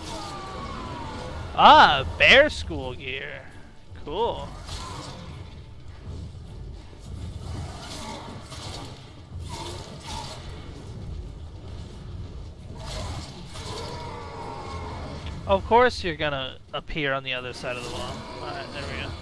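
A sword swishes and clangs in a fight.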